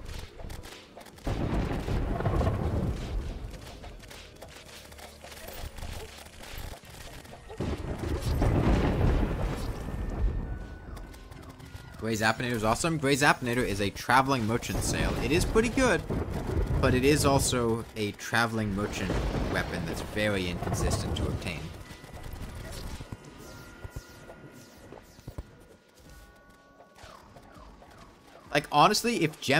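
Game sound effects of magic weapons fire and crackle in rapid bursts.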